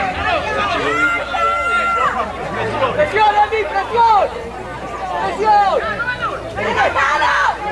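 A football thuds as a child kicks it.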